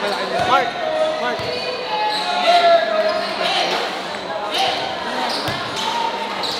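A crowd of young men and women chatters and shouts in a large echoing hall.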